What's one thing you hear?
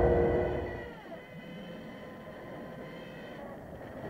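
A plane's engine drones and whines as it dives.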